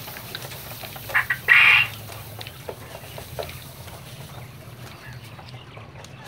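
Mealworms pour from a box into a plastic bucket with a rustling patter.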